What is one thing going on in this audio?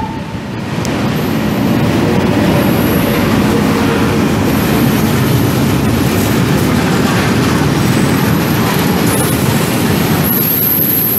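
Tank wagons rumble and clatter over the rails.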